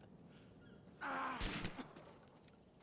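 A gunshot rings out loudly.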